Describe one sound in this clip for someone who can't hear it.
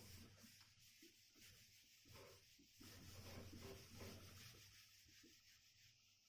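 A felt eraser rubs across a whiteboard.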